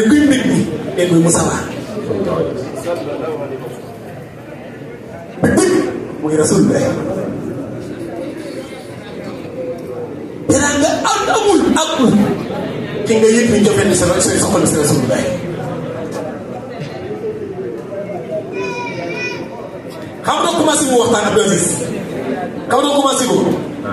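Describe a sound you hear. A man preaches with animation through a microphone, in a reverberant hall.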